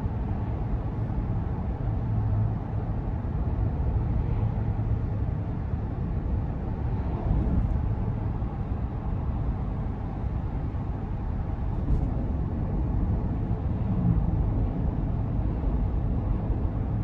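Tyres roll on pavement with a low rumble.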